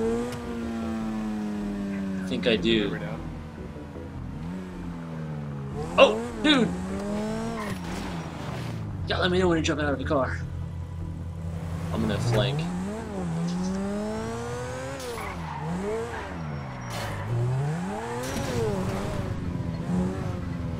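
A sports car engine revs and whines as the car speeds along.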